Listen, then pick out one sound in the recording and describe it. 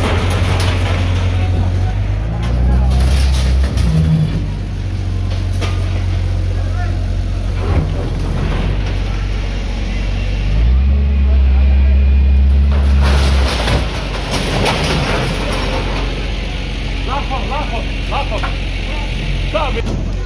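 A metal bucket scrapes and bangs against a metal gate.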